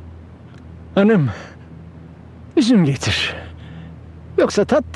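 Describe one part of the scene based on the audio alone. An elderly man speaks in a low voice.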